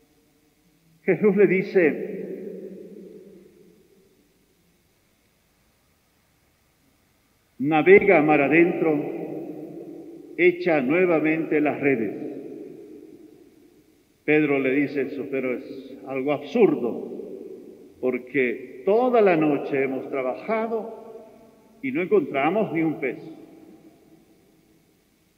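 An elderly man speaks calmly through a microphone, in phrases with pauses, echoing in a large reverberant hall.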